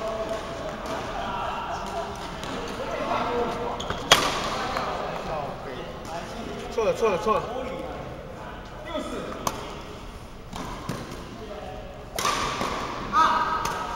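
Rackets strike a shuttlecock with sharp pops.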